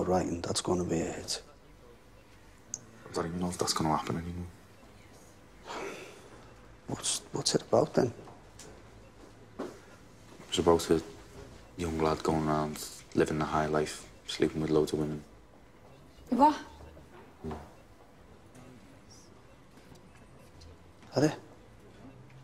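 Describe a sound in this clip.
A middle-aged man speaks in a low, steady voice.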